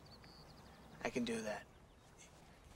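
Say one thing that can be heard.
A younger man answers briefly.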